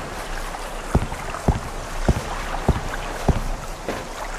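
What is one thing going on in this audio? Footsteps clang on a metal deck.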